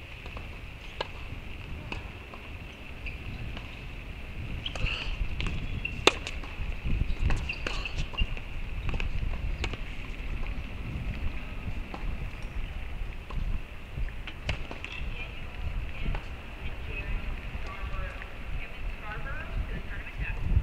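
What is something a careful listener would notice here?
A tennis ball is struck sharply by rackets in a rally.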